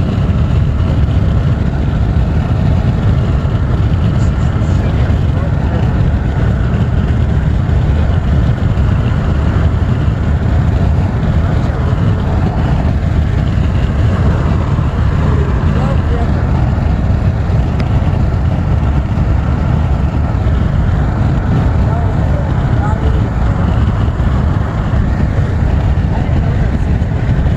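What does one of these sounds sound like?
A car's engine and tyres roar steadily on a highway, heard from inside the car.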